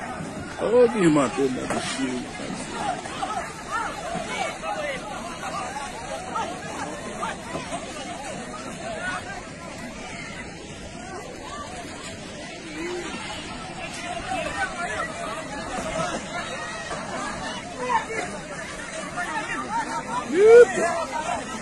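A crowd of men and women chatter and shout outdoors.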